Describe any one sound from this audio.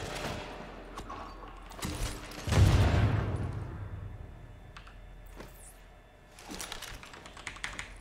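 Gunshots crack in bursts nearby.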